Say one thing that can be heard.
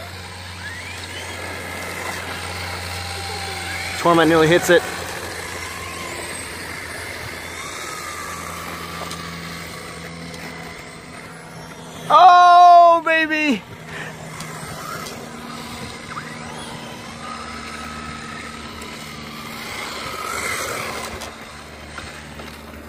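A small electric toy car whines as it speeds along pavement, its motor pitch rising and falling.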